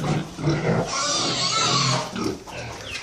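A pig squeals loudly.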